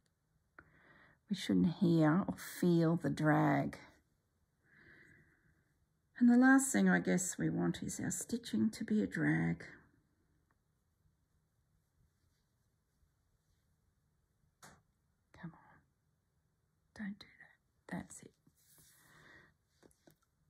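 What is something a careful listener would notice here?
Thread rustles softly as it is pulled through fabric.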